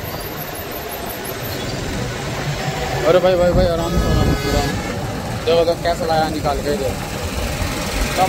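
Car tyres hum steadily on a road.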